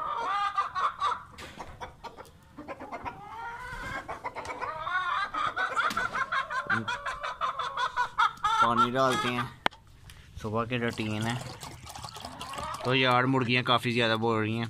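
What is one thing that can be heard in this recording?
Hens cluck and chatter close by.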